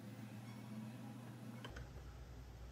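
A spoon stirs sauce in a glass bowl.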